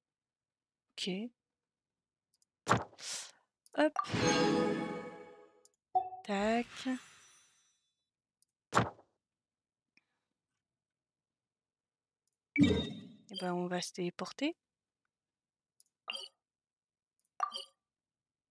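Game menu chimes and clicks sound as pages change.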